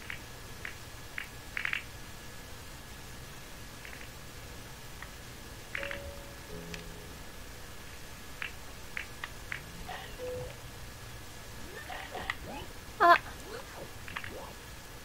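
Short soft game footstep sounds tick now and then.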